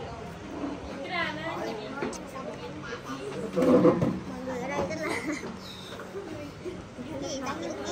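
Women chat nearby.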